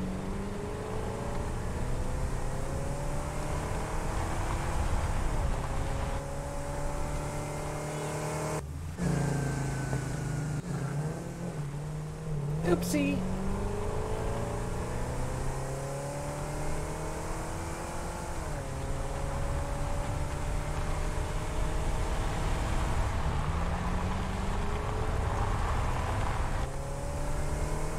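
A buggy engine revs and hums as it drives over rough ground.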